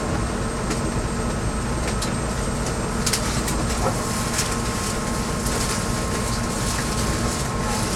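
Train wheels click and clack over rail joints.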